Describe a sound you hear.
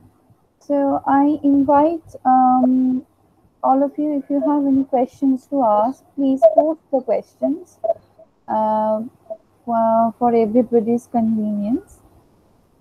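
A woman speaks steadily over an online call.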